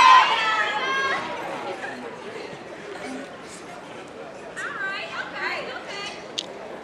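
Young women chant loudly in unison outdoors.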